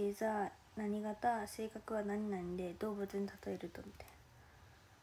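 A young woman speaks calmly close to the microphone.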